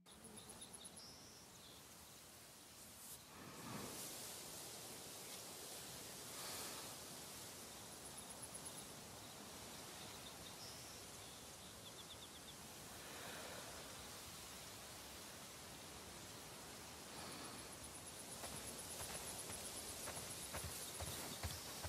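Wind blows steadily through tall grass, rising in gusts.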